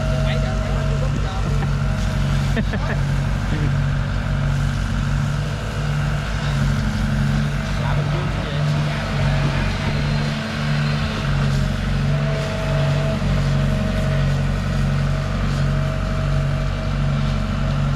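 A diesel engine rumbles steadily with a low, throbbing pulse.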